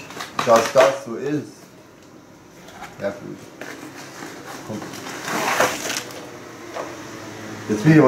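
Cardboard rustles and flaps as a box is opened.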